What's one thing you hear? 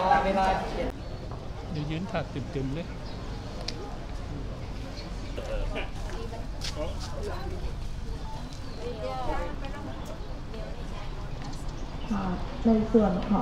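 An elderly man speaks calmly to someone close by.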